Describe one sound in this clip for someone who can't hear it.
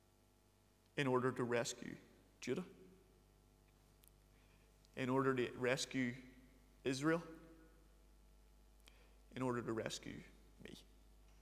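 A man speaks calmly into a clip-on microphone in a room with a slight echo, pausing between phrases.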